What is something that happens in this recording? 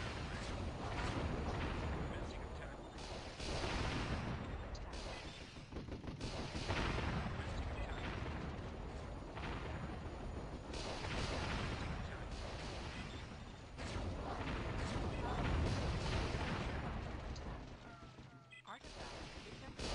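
Explosions boom and rumble again and again in a battle.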